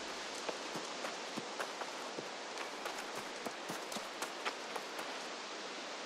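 Footsteps patter quickly on a dirt path.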